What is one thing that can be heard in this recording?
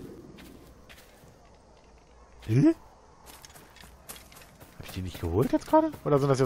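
Footsteps tread softly on grass.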